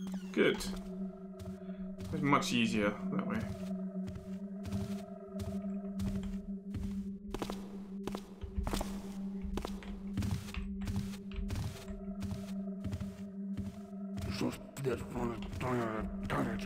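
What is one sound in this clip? Footsteps walk slowly across a stone floor.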